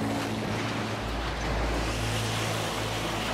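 A wind-powered sand sled rumbles low as it glides along.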